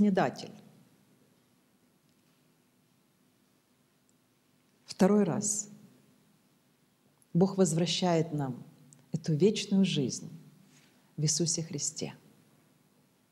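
A middle-aged woman speaks calmly into a close microphone, with pauses.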